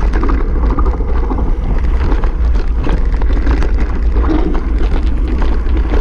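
Bicycle tyres rattle and crunch over a rocky trail.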